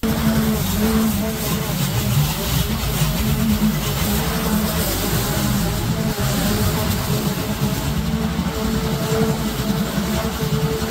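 A petrol lawn mower engine drones steadily close by.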